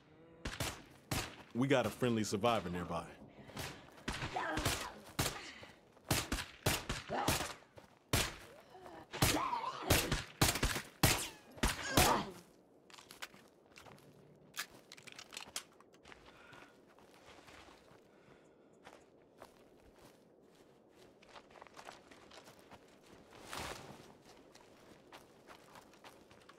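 Footsteps shuffle softly over grass and ground.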